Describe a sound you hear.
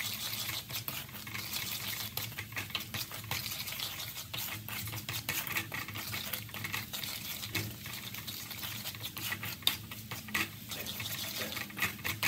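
A wooden spatula scrapes and taps against a metal pan.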